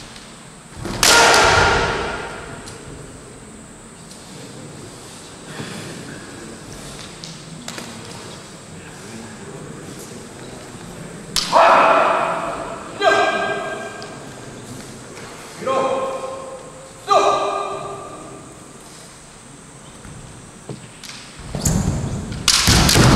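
Bamboo swords clack against each other.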